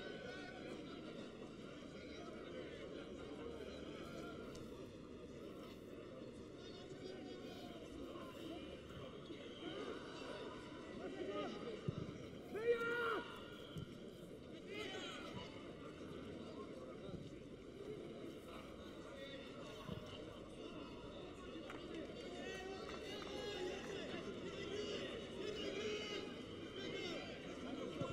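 A large crowd cheers in an open-air stadium.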